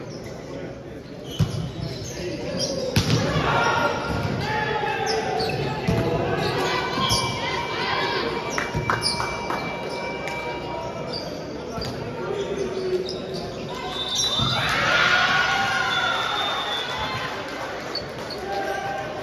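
A crowd of young people chatter and call out in a large echoing hall.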